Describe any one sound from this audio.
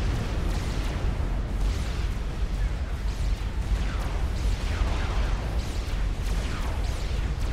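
Explosions rumble low and constantly.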